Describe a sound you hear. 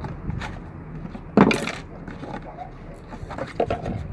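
A plastic piece snaps and clacks on a wooden table.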